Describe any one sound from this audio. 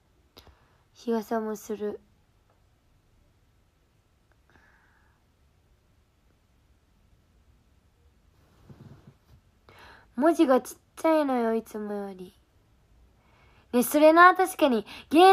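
A young woman speaks close by in short bursts, in a soft, playful voice.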